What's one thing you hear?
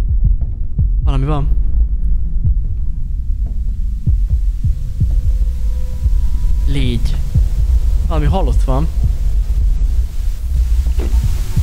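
A young man speaks briefly into a close microphone, in short animated bursts.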